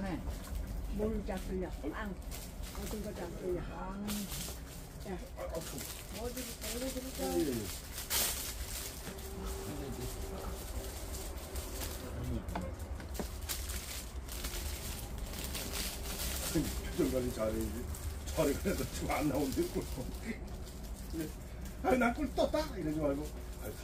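Elderly men and women chat casually close by.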